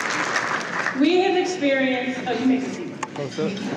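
A woman speaks through a microphone and loudspeakers in a large hall.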